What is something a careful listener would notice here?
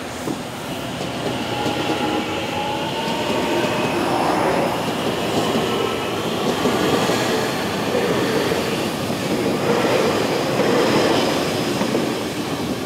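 Train brakes squeal as the train slows.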